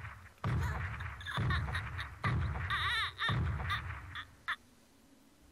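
A young boy screams and cries out in terror, close by.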